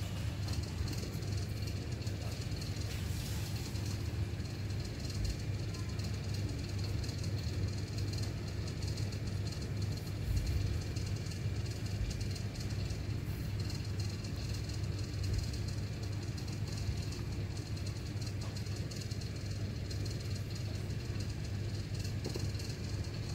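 Fingers rub and tap softly against a tablet's edges.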